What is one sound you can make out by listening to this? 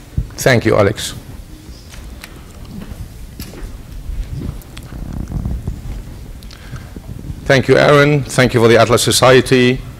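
A man speaks calmly into a microphone over a loudspeaker in a large echoing hall.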